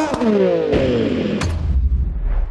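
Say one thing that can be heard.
A motorcycle crashes with loud thuds.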